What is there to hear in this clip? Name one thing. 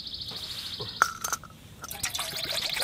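Water pours into a metal cup.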